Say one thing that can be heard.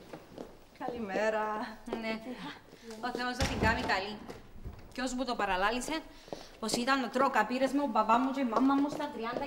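Young women talk with animation nearby.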